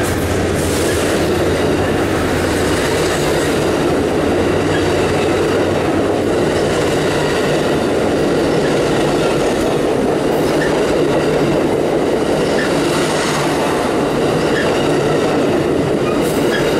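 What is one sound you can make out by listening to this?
A passenger train rushes past close by with a loud steady roar.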